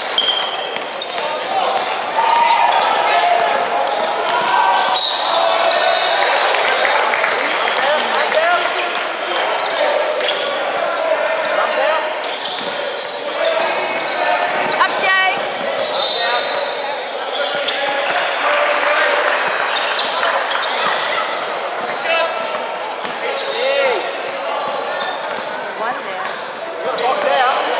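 Sneakers squeak sharply on a hard court floor.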